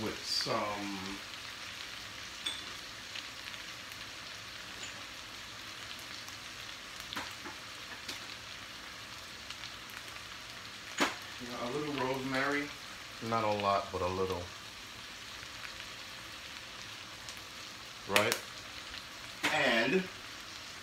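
Food sizzles faintly in a frying pan.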